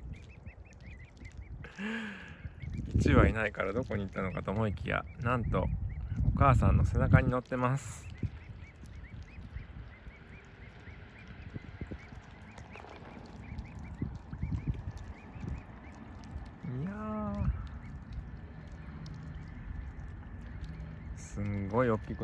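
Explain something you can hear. Swans paddle softly through calm water.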